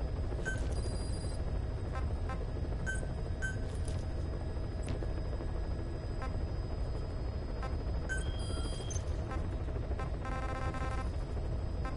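Short electronic menu beeps and blips sound again and again.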